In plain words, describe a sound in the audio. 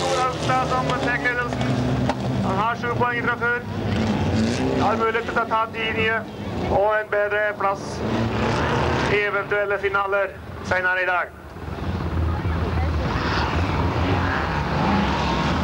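Tyres skid and crunch on gravel.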